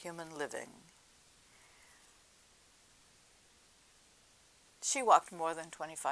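An elderly woman speaks calmly, close by.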